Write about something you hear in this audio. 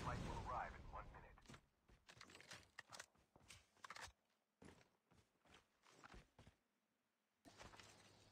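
Footsteps crunch on dirt.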